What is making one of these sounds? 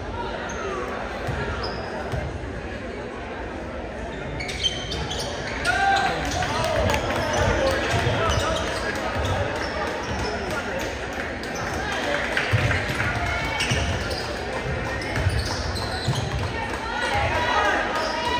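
A basketball bounces on a hard court in an echoing gym.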